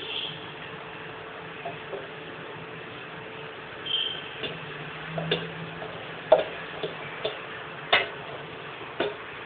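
Liquid pours and splashes into a pot.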